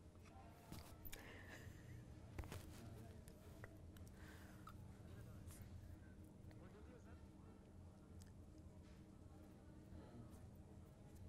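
A small crowd of men and women murmurs and chatters outdoors.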